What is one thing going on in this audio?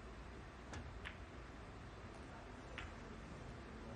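Snooker balls knock against each other.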